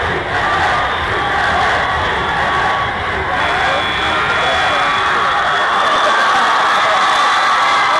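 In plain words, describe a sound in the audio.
A man close by shouts and cheers.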